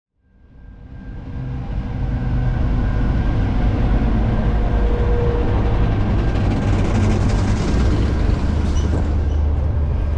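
A diesel locomotive engine rumbles loudly close by as a train rolls past.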